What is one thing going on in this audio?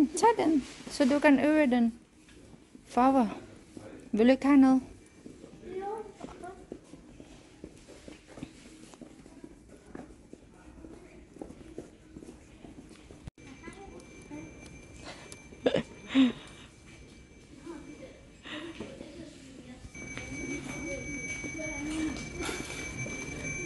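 A young boy talks excitedly, close by.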